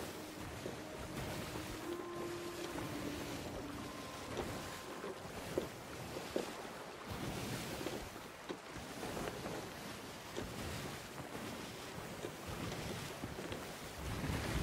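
A wooden ship creaks.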